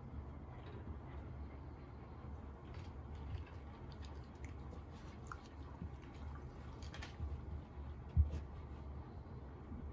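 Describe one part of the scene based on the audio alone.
A dog's claws click on a hard floor.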